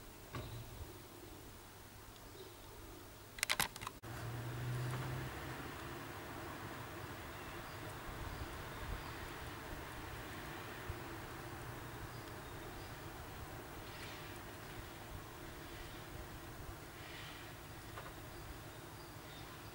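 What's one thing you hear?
Torn plastic rustles and flutters in the wind.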